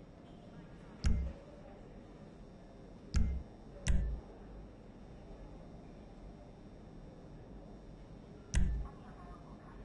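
Short, sharp interface clicks sound now and then.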